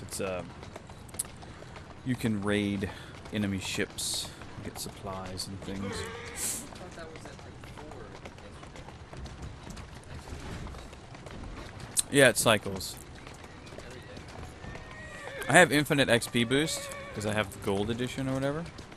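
A horse-drawn carriage rattles steadily along a cobbled street.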